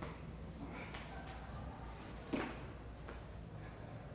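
Bodies thump and scuffle on a hard floor.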